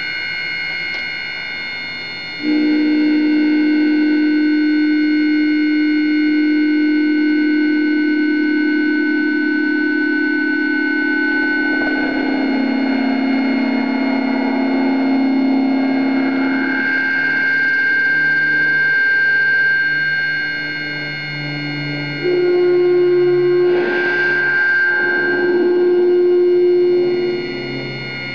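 An electric guitar plays sustained, droning notes through effects, shifting pitch now and then.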